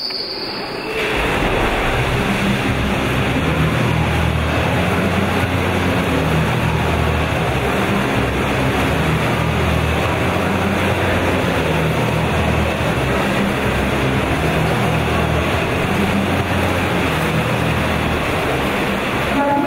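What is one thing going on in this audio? Swimmers splash and churn the water in a large echoing hall.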